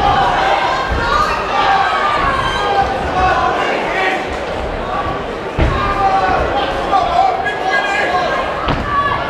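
Boxing gloves thud against a boxer.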